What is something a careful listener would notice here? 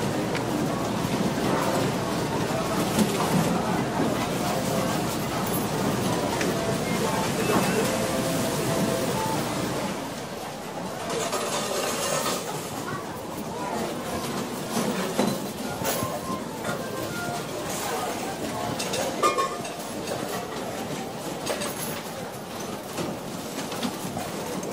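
Slot machines chime and jingle.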